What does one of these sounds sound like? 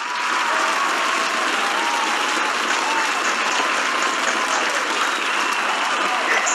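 People clap their hands over an online call.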